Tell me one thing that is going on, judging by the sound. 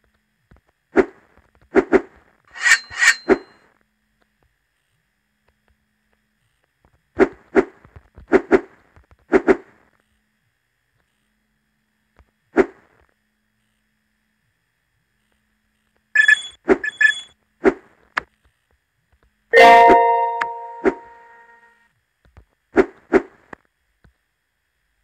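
Short cartoon jump and footstep sound effects pop now and then.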